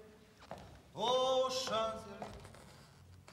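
A man calls out loudly in a large hall.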